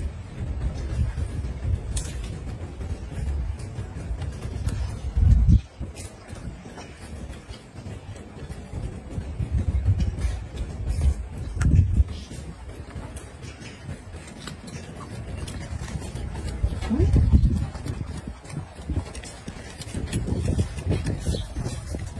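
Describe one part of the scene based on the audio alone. A monkey chews food close by.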